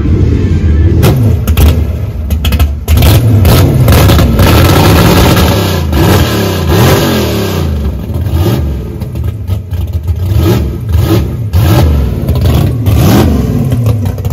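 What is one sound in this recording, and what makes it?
A muscle car engine rumbles loudly and revs up and down as the car rolls slowly by.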